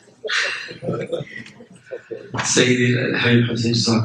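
Several men laugh.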